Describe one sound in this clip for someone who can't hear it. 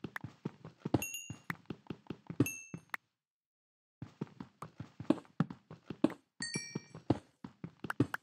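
Small items pop up with short high blips.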